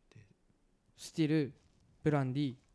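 A second young man speaks into a close microphone.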